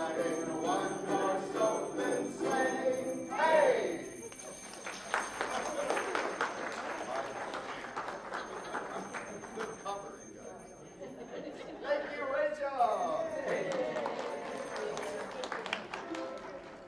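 A group of ukuleles strums together.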